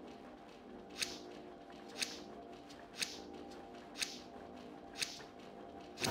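A countdown timer ticks about once a second.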